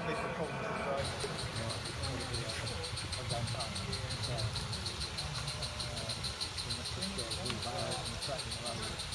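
A model steam locomotive chuffs along the track.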